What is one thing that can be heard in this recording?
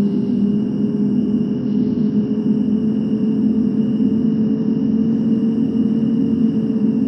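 A bus engine hums steadily as it speeds up along a road.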